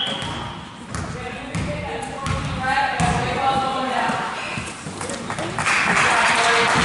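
Sneakers squeak on a wooden gym floor.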